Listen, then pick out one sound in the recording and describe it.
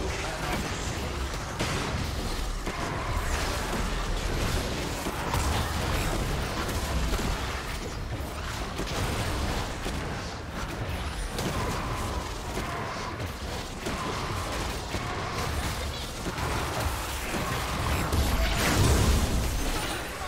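Spell blasts and hits from a fantasy battle video game play in a dense mix.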